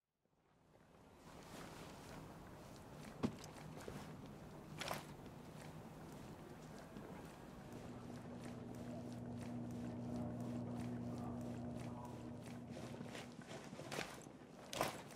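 Footsteps crunch on snow and then tap on hard floors.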